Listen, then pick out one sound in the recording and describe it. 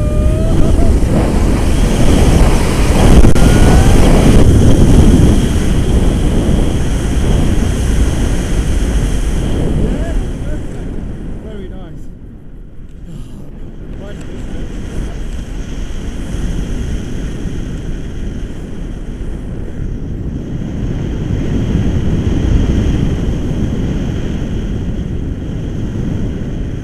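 Strong wind roars and buffets a microphone outdoors.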